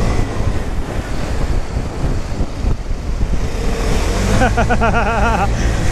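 A scooter engine hums steadily up close.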